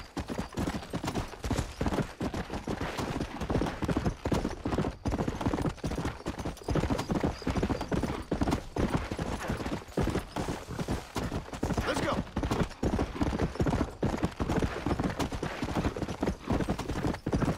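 A horse's hooves gallop quickly over dirt.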